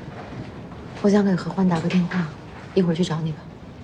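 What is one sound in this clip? A woman speaks in a lively, teasing voice nearby.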